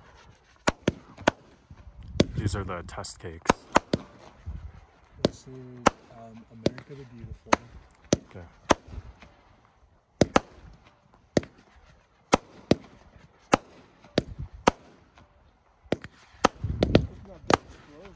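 Fireworks crackle and fizz as they spread.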